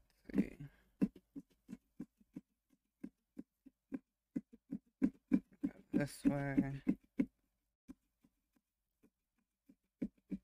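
A carving tool scrapes and taps against the inside of a pumpkin in quick, irregular strokes.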